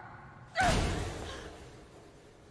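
A young woman cries out sharply.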